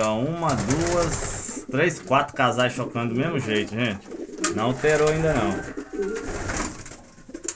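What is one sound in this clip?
Pigeons coo.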